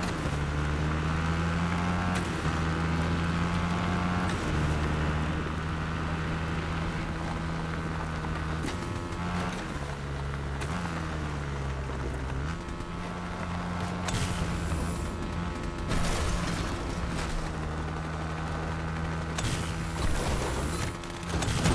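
A motorbike engine hums steadily and shifts in pitch as it speeds up and slows down.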